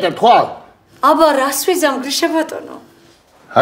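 A middle-aged woman speaks expressively, close by.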